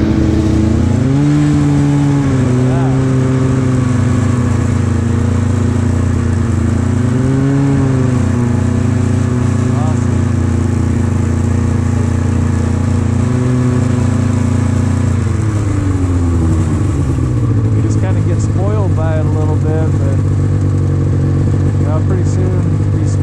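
A snowmobile engine drones up close, its pitch rising and falling.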